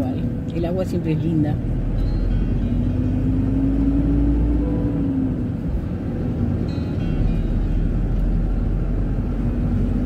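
A car drives along with a steady low road rumble.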